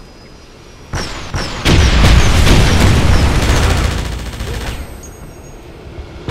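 A huge explosion booms and roars.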